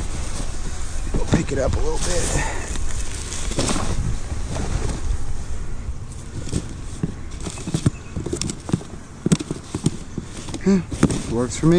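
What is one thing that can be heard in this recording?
Cardboard boxes scrape and thump as they are moved.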